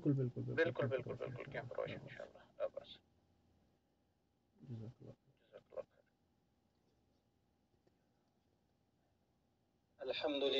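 A man speaks calmly into a close microphone, in bursts with pauses.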